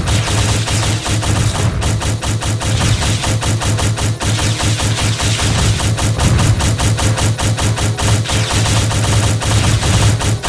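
Metal blades clash and strike in rapid, steady blows.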